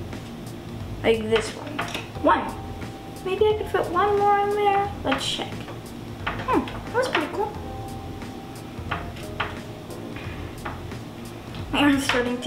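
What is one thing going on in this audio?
A young child speaks nearby in short bursts.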